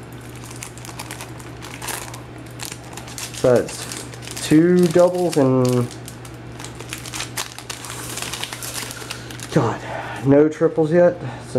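A foil wrapper crinkles and rustles as it is handled and torn open.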